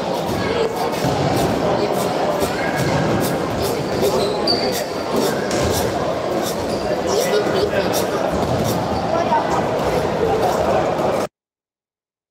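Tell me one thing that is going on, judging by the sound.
Balls thump and bounce in a large echoing hall.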